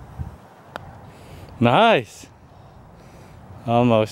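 A golf putter taps a ball.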